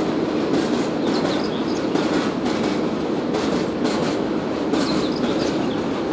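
A long freight train rumbles and clatters steadily along the tracks nearby.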